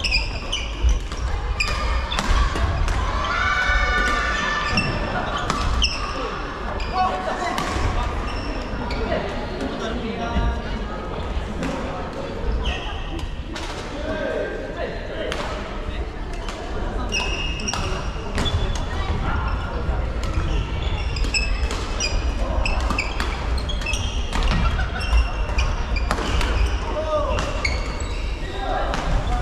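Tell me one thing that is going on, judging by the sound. Men and women call out and chatter in the background.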